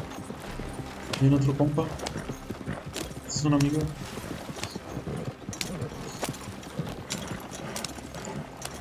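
Horse hooves clop and cart wheels rattle along a dirt track.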